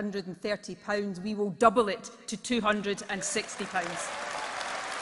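A woman speaks firmly through a microphone in a large hall.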